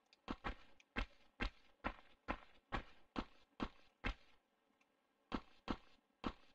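Quick footsteps thud on stone as a figure runs, with a slight echo.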